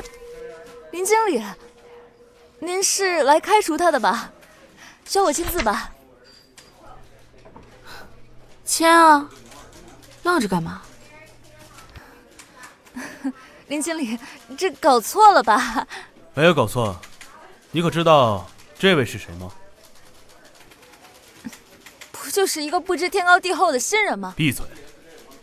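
A young woman speaks sharply up close.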